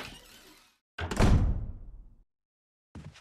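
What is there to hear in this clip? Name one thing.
A heavy wooden door slams shut with an echo.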